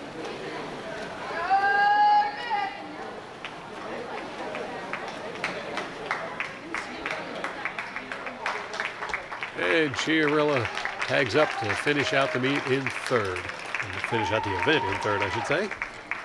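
Swimmers splash through the water of an echoing indoor pool.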